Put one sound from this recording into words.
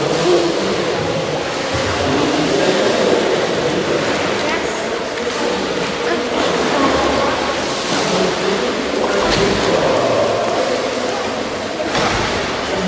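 Water splashes and gurgles as a swimmer strokes past.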